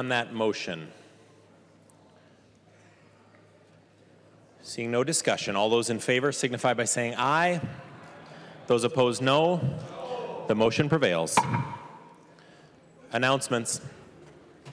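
A man speaks formally through a microphone in a large echoing hall.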